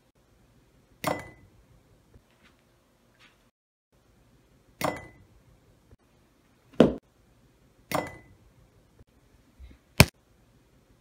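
A ball strikes a ceramic mug with a sharp ringing clink.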